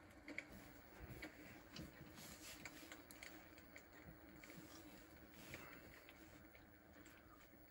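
A chicken clucks softly nearby.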